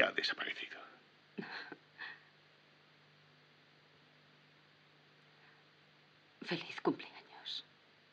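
A woman speaks softly and closely, with long pauses.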